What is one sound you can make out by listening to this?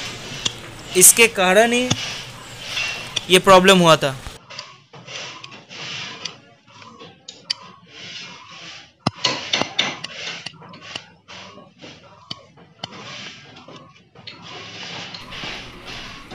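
Metal parts click and tap against each other.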